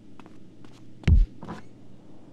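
A door opens with a heavy thud.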